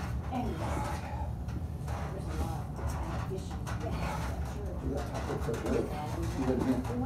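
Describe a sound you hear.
A man grunts and strains with effort close by.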